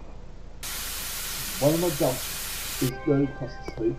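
A spray nozzle hisses as water sprays out.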